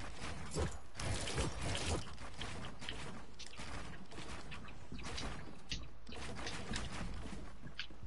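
Quick footsteps thud on wooden planks.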